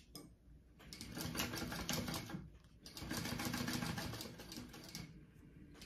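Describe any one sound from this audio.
A sewing machine runs in short bursts.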